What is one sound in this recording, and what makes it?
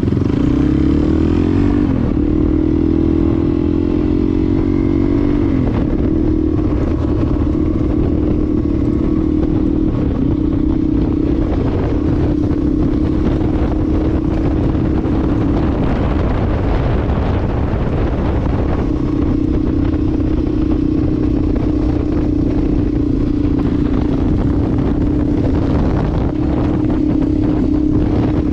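Wind rushes past outdoors.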